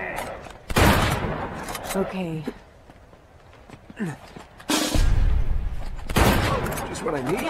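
Gunshots crack loudly, with heavy blasts.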